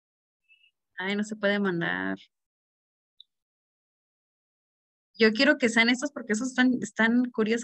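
A young woman speaks through an online call, in short bursts.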